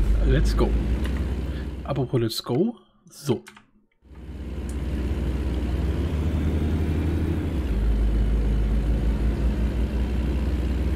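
A diesel semi-truck engine drones.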